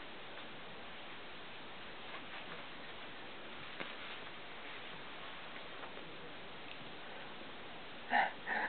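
Small puppies scuffle and tussle on a soft blanket.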